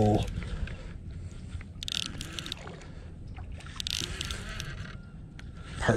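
A fishing reel whirs as its line is wound in.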